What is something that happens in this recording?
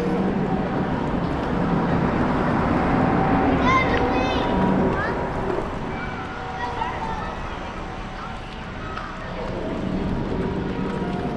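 Small wheels roll over paving stones with a steady, rough rumble.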